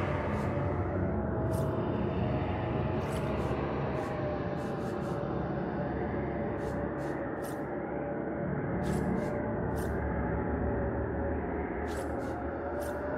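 Soft interface clicks tick as menu items are selected.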